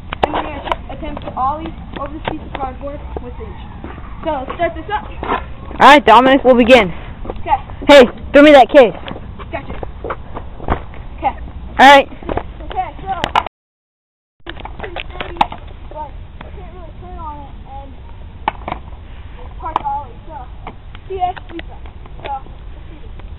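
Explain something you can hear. A boy talks and shouts excitedly close by.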